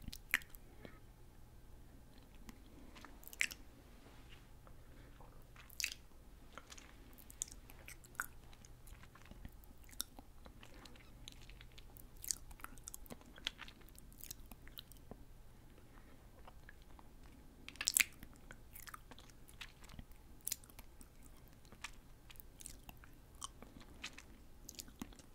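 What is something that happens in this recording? A young woman's lips and mouth make soft wet clicks close to a microphone.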